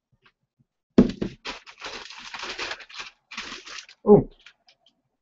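Paper rustles as a box is opened.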